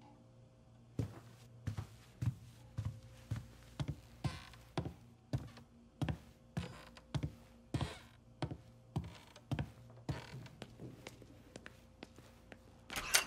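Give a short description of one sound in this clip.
Footsteps thud heavily down wooden stairs.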